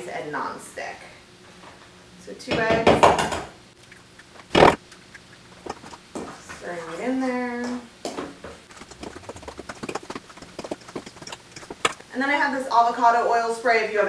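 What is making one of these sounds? A young woman speaks calmly and warmly, close by.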